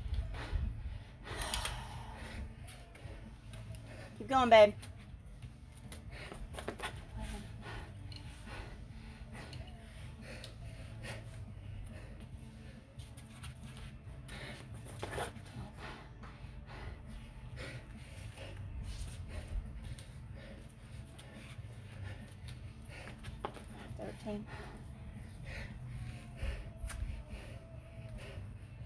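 A person repeatedly drops to the ground and jumps back up on concrete.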